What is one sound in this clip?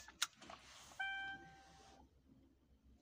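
An electronic device beeps with a short steady tone.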